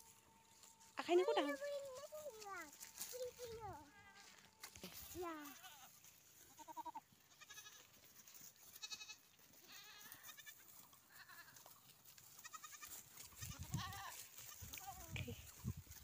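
Goats bleat nearby.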